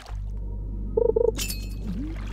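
A short double chime signals a fish biting.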